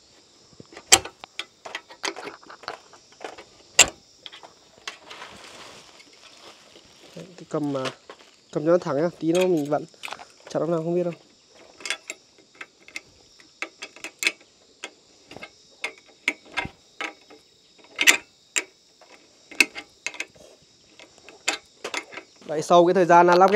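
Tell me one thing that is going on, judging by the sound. Metal parts clink and knock as they are fitted together.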